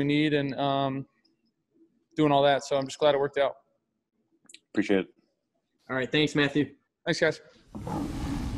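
A young man speaks calmly into a microphone, close by.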